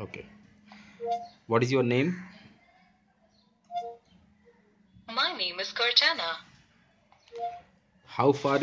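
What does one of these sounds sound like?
A phone gives a short two-note chime.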